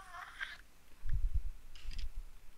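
A wooden chest breaks apart with dull thuds.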